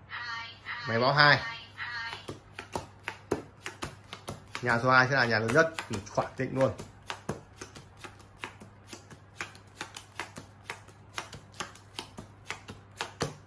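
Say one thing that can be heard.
Playing cards snap and slap down on a table, many times in quick succession.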